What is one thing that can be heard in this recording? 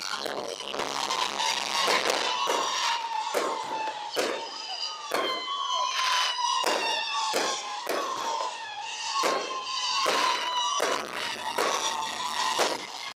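Fireworks crackle after bursting.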